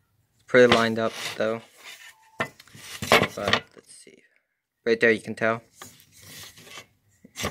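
A blade scrapes softly against wood.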